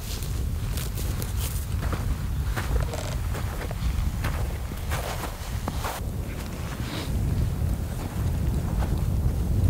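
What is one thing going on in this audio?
Footsteps crunch through snow and heather.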